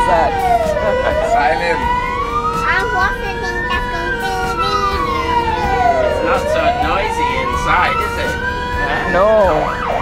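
A fire engine siren wails up and down loudly.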